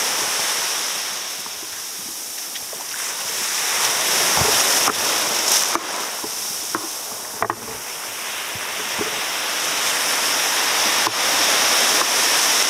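Waves break and wash up onto the shore close by, surging and fading.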